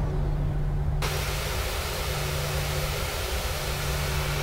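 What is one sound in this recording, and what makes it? A jet engine whines loudly close by, heard from outside.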